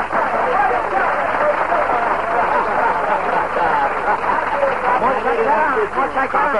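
A crowd of men cheers and shouts all at once.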